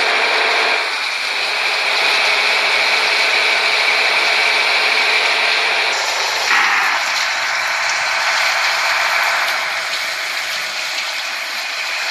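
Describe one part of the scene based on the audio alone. A coach bus engine drones as the bus cruises at highway speed.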